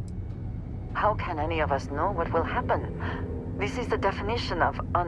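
A young woman speaks calmly and questioningly, close by.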